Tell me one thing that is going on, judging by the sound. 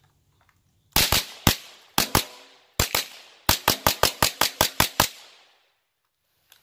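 A rifle fires a rapid series of loud shots outdoors, each echoing briefly.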